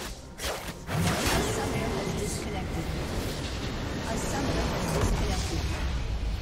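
A large structure explodes with a deep rumbling blast.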